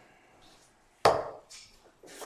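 A plastic game piece taps down onto a table.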